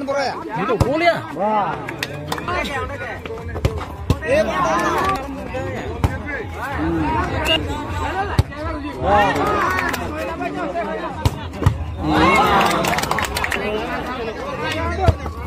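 A crowd of boys and men shouts and cheers outdoors.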